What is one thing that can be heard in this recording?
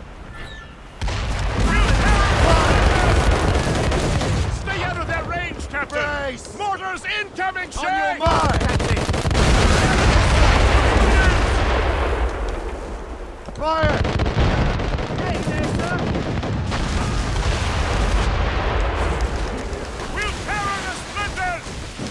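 Cannons boom in heavy volleys.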